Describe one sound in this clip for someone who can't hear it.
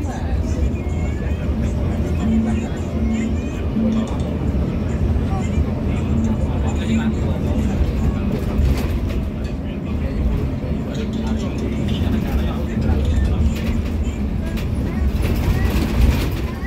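Tyres roar on the road at speed.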